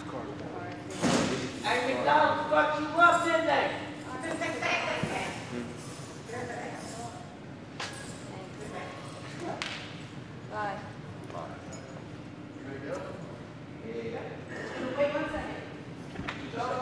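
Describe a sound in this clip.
A young man speaks with animation, close by, in a large echoing hall.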